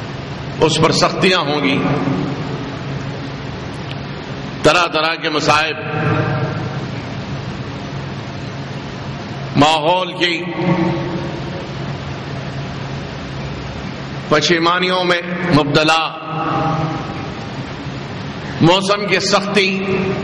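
An elderly man speaks through a microphone in bursts with long pauses, his voice echoing in a hall.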